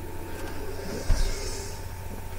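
An iron is set down with a thud.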